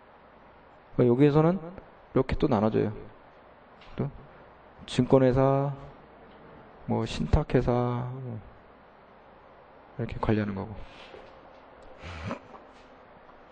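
A man speaks with emphasis into a microphone, in short bursts with pauses.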